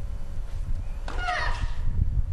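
A racket strikes a tennis ball with a sharp pop.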